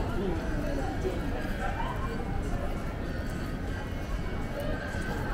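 Footsteps tap on wet pavement.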